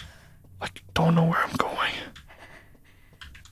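A man talks into a microphone in short bursts.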